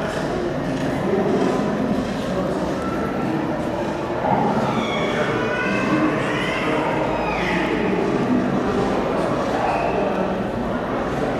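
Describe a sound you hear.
A crowd of visitors chatters throughout in a large echoing hall.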